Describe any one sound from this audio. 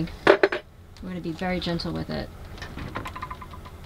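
A small appliance door clicks open.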